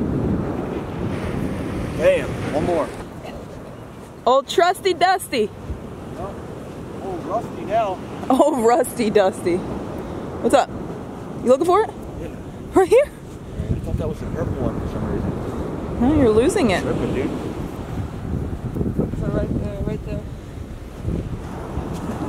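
A young man talks with animation close by, outdoors in wind.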